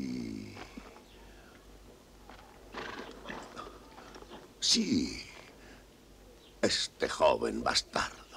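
An older man speaks firmly and sternly, close by.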